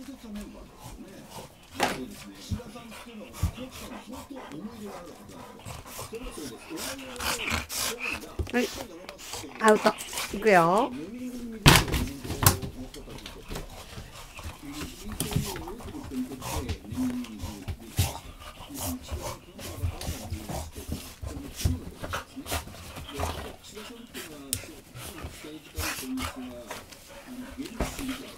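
Paws and bodies thump and scuffle on bedding.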